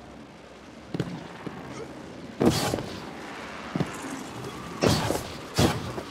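A game character lands with heavy thuds.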